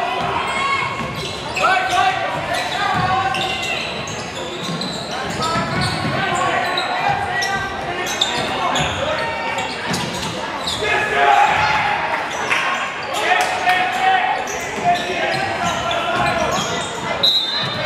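A crowd murmurs in an echoing gym.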